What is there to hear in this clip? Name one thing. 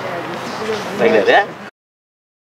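A man laughs briefly.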